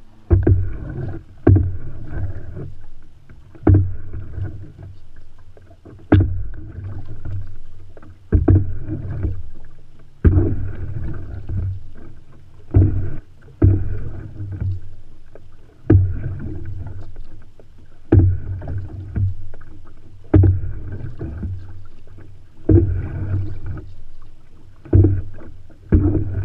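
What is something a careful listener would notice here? Water laps against the side of a canoe.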